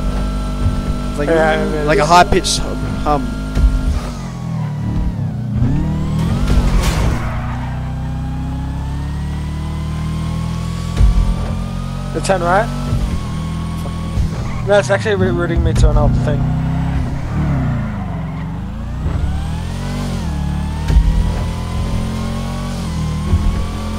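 A car engine roars steadily, its pitch rising and falling as it speeds up and slows down.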